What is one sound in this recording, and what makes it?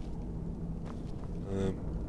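A fire crackles and roars softly.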